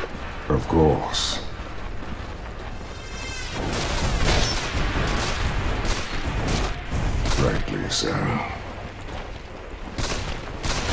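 Fantasy battle sound effects clash and whoosh as spells are cast.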